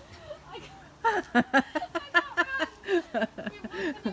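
Puppies bark and yelp loudly and excitedly.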